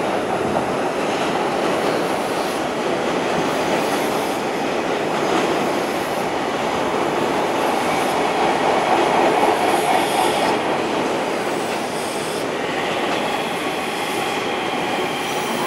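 A train rolls slowly closer, its wheels clattering over the rails.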